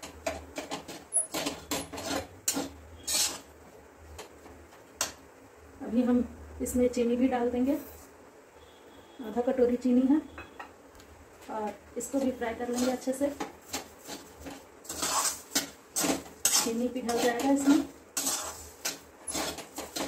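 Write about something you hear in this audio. A metal spoon scrapes and clinks against a pan.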